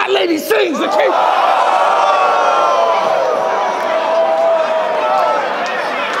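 A large crowd cheers and shouts in a big echoing hall.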